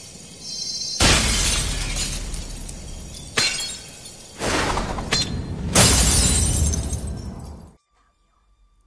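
A crackling magical blast roars in loud surging waves.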